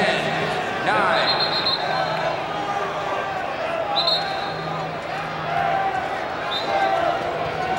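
A referee blows short, sharp whistle blasts.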